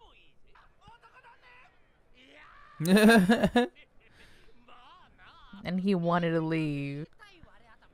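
A young woman laughs softly into a close microphone.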